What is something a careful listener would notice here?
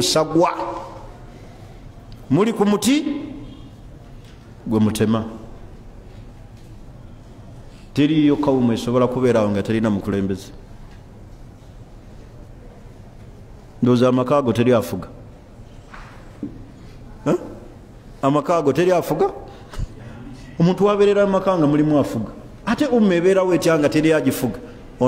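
A man speaks forcefully into microphones in short bursts with pauses.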